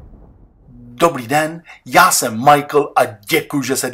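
A man speaks with animation close by.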